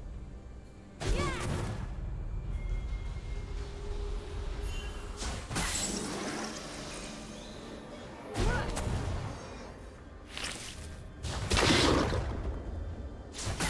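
Magical spell effects whoosh and crackle in short bursts.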